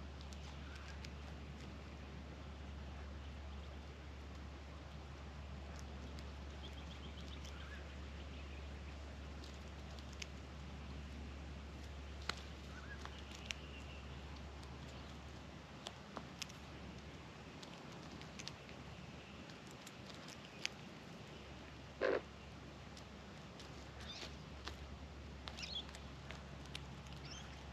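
Birds peck and rustle through dry straw close by.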